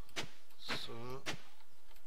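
A hoe thuds into dry soil.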